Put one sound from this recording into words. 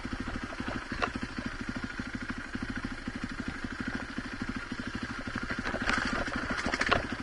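Stones and dirt crunch and rattle under knobby tyres.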